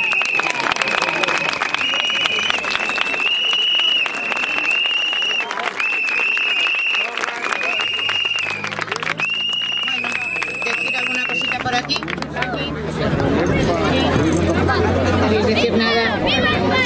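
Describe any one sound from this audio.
A crowd of men and women talks and calls out loudly outdoors.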